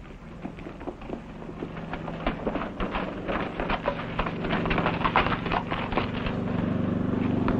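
Horses' hooves clatter on rocky ground.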